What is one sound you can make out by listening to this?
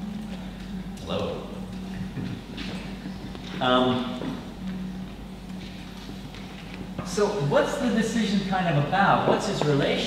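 A man speaks calmly to a group in a large echoing hall.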